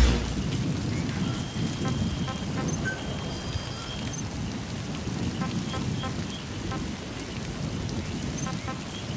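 Soft electronic menu beeps chime now and then.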